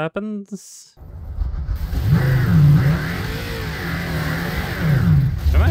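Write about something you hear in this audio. A vehicle engine hums and revs while driving.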